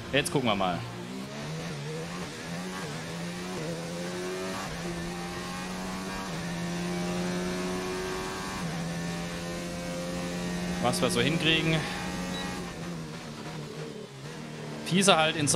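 A racing car engine whines steadily at high speed.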